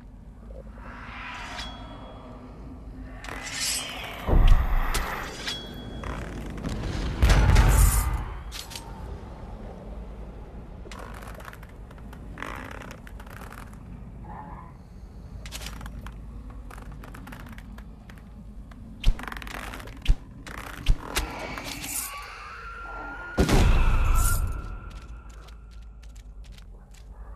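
An arrow is loosed from a bow with a sharp twang.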